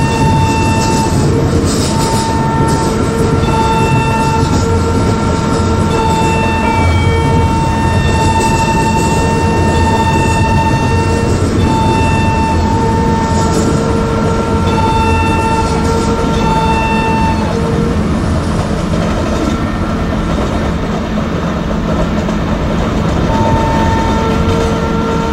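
A locomotive rumbles steadily along the rails.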